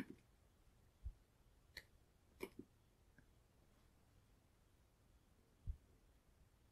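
Small metal clips click as they are fastened onto fabric.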